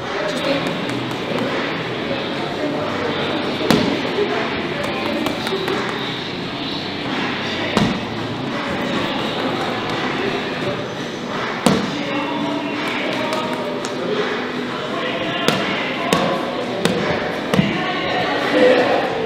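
An exercise ball thumps against a wall.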